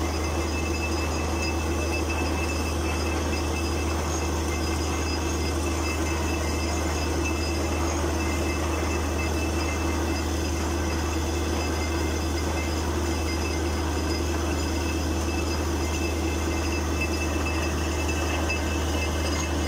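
A heavy engine drones steadily close by.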